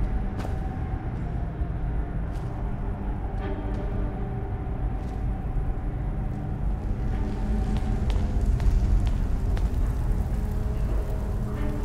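Footsteps tread slowly on stone in an echoing tunnel.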